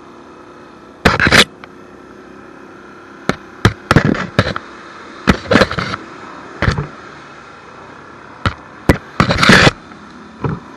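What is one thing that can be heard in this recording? Muddy water splashes loudly under the quad's tyres in bursts.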